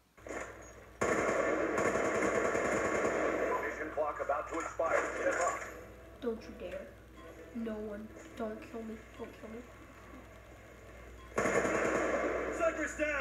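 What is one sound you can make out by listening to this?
Gunfire from a video game plays through a television speaker.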